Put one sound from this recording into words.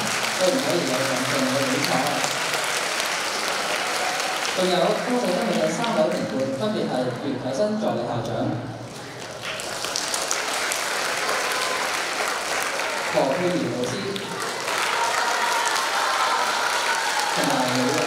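A crowd of young people chatters in a large echoing hall.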